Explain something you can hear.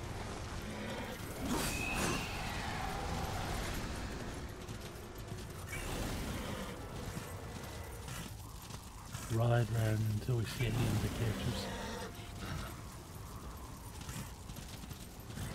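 Fire whooshes and crackles as a mount gallops.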